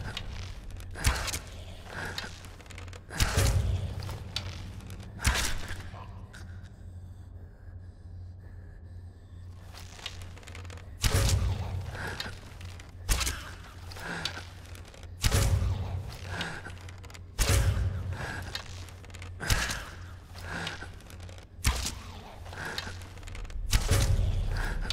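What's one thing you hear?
A bowstring twangs sharply as arrows are loosed again and again.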